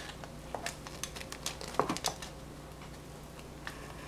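A plastic knife presses and cuts into a soft cake.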